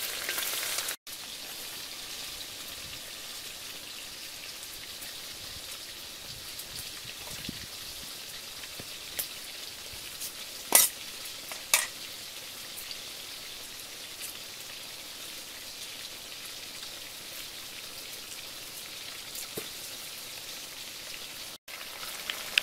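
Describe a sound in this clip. A small wood fire crackles.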